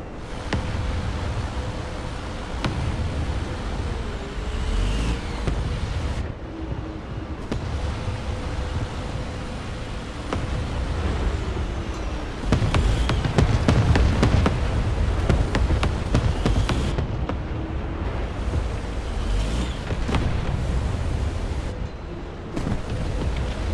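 Tank tracks clank and squeal over the ground.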